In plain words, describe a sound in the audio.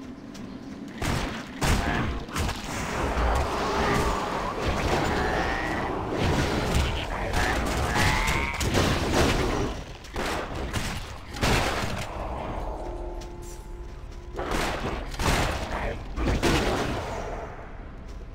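Game combat sounds of blows, magic blasts and impacts crash in bursts.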